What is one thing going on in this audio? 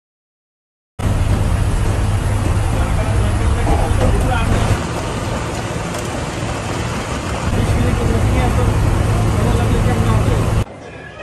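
Wind rushes past a moving vehicle.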